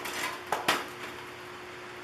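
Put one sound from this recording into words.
A metal can clanks against a hard tabletop.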